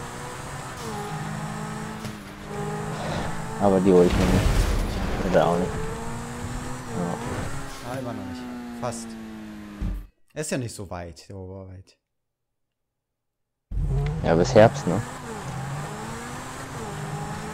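A sports car engine roars and revs at high speed.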